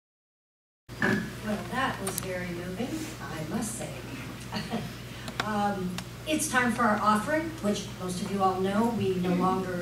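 A woman speaks calmly through a microphone in a hall.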